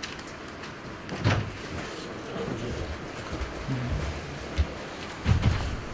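A man rustles papers on a table.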